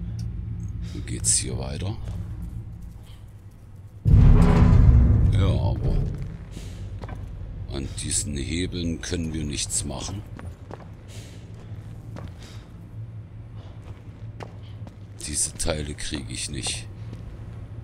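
A young man talks casually into a microphone, close by.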